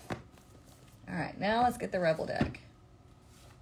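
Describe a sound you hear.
A young woman speaks briefly and with animation, close by.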